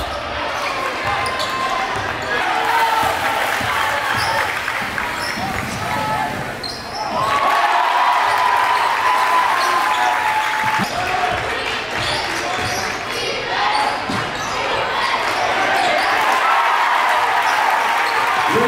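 A basketball bounces on a hardwood floor in a large echoing gym.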